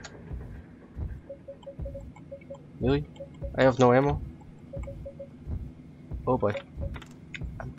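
Short electronic menu blips sound as items are scrolled.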